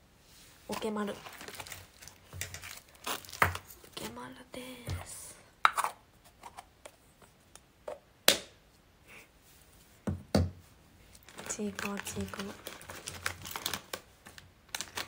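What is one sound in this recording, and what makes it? A young woman talks softly and casually into a nearby microphone, with pauses.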